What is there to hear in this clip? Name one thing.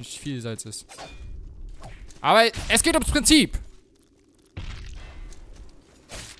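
Heavy blows thud and clang during a fight.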